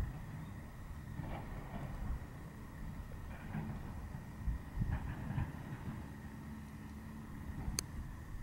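Wind blows across open water outdoors.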